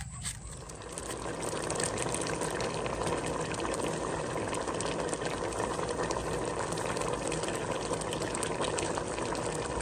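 Water boils and bubbles steadily in a pot.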